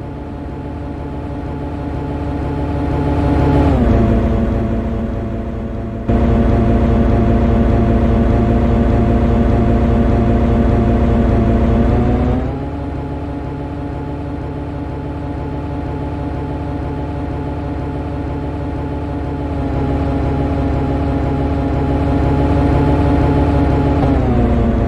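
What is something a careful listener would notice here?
An electric locomotive hums steadily as a train runs at speed.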